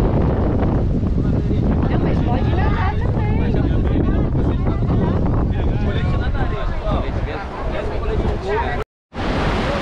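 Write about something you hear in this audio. A young man speaks loudly to a group outdoors.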